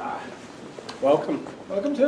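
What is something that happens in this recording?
Footsteps pass close by indoors.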